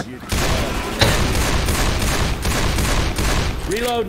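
A gun fires rapid shots at close range.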